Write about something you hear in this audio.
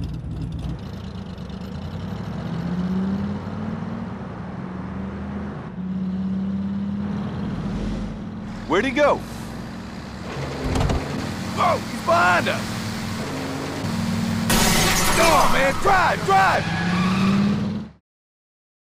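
A car engine rumbles and revs.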